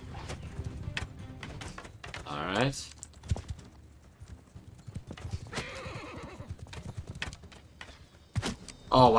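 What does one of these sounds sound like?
Horse hooves thud rapidly on snowy ground.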